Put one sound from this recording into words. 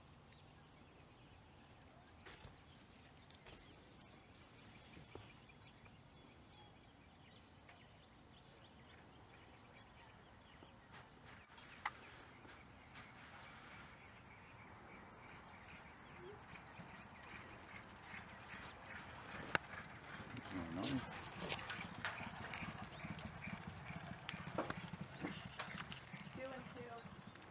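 A horse gallops on a dirt track, its hoofbeats drawing closer.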